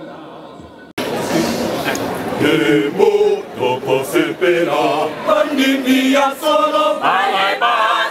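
A large choir sings loudly outdoors.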